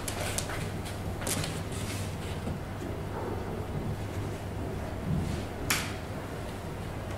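A woman speaks calmly close to a microphone.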